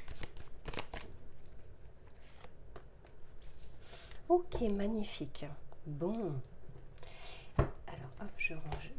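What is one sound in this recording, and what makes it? Playing cards rustle and flick as they are shuffled by hand.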